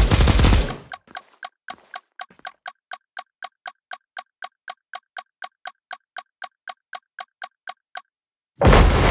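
A game's ticking countdown beeps rapidly.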